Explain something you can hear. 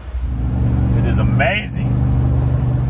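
A middle-aged man speaks briefly, close by.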